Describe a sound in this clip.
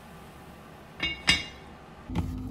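A heavy lid clanks down onto a cooking pot.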